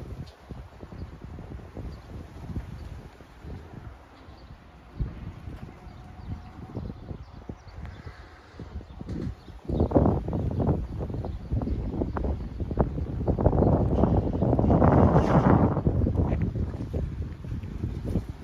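Many pigeon wings flutter and clap overhead.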